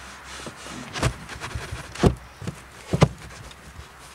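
A hand taps on a carpeted boot floor.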